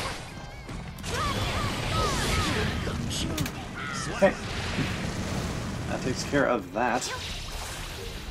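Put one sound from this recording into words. Whooshing game effects sweep past.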